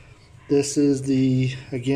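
A button on a small plug-in device clicks under a finger.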